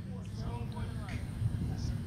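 A cricket bat strikes a ball outdoors.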